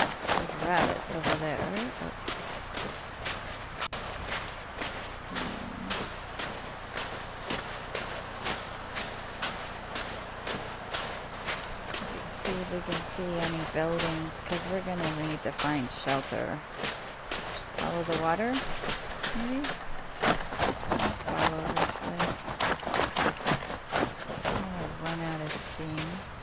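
Footsteps crunch steadily through deep snow.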